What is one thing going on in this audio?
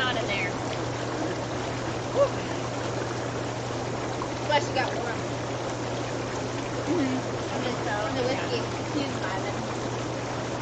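Water bubbles and churns steadily in a hot tub.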